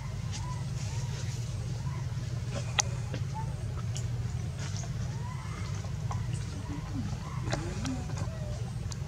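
Young monkeys squeak and chirp softly close by.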